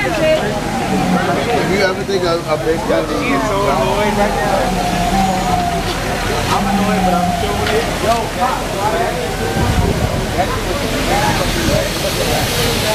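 A dense crowd of men and women chatters and shouts nearby.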